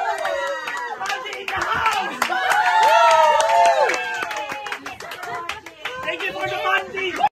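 Young women sing and shout excitedly close by.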